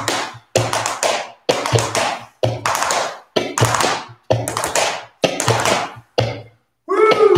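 A man's shoes tap and shuffle on a wooden floor in a quick rhythm.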